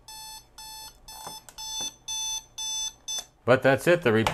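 An alarm clock beeps in quick, repeated bursts.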